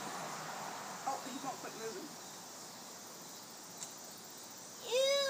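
Young girls talk quietly nearby.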